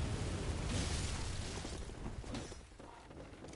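Blades clash and slash in a fight.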